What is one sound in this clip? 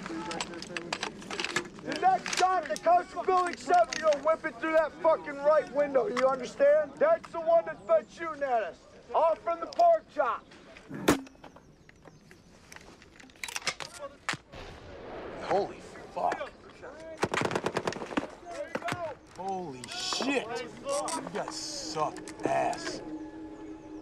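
Gunshots crack in quick bursts outdoors.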